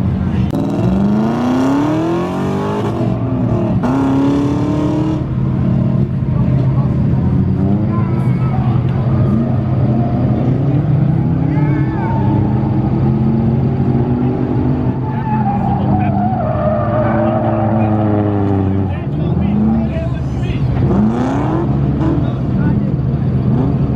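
Tyres screech and squeal on pavement.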